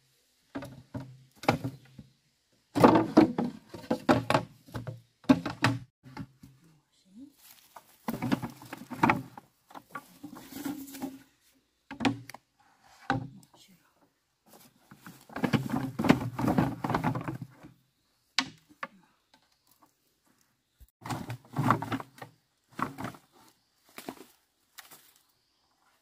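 Bamboo poles knock and clatter against one another.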